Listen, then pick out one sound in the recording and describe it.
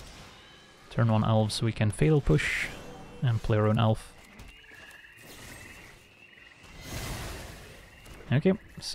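A magical whooshing effect swells and fades.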